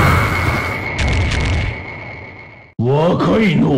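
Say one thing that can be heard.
A crowd cheers loudly and the cheering fades.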